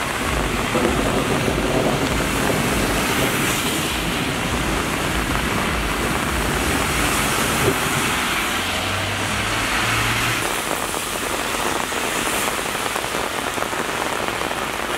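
Rain falls steadily on a street.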